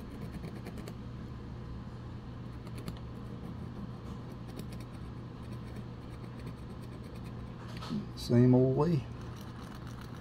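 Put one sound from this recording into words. A small file scrapes back and forth on metal.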